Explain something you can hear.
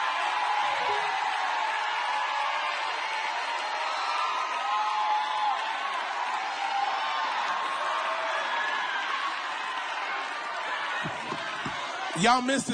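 A crowd cheers and calls out in a large hall.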